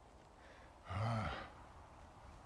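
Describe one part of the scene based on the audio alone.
A man groans wearily.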